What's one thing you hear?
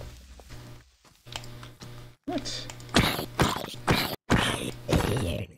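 A zombie groans.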